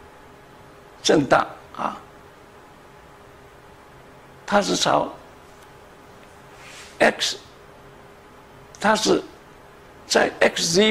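An elderly man speaks calmly into a microphone, in short bursts with pauses.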